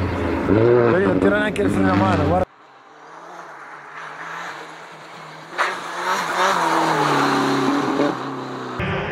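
A rally car engine revs hard, rising and falling in pitch as it shifts gears.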